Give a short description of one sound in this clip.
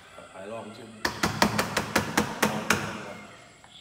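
Metal clanks sharply several times as a lid is fitted onto a steel tank.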